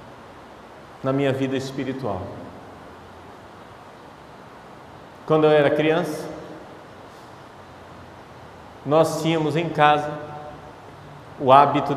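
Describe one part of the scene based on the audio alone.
A man speaks calmly into a microphone in short phrases, heard through a loudspeaker in a reverberant room.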